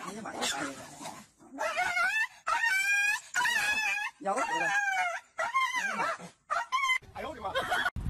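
A dog barks loudly and repeatedly.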